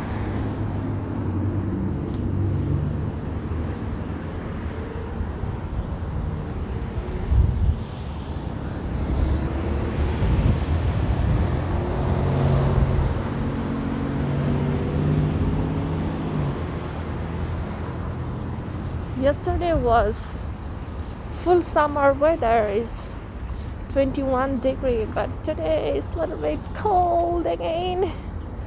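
Traffic rumbles steadily on a nearby city street.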